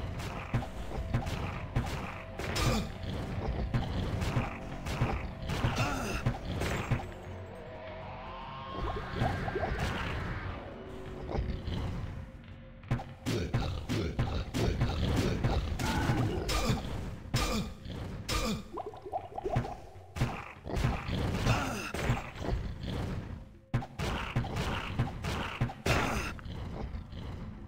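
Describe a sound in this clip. Game combat sounds clash and thud repeatedly.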